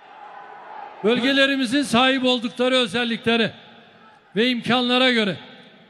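A crowd of young men chants loudly in a large echoing hall.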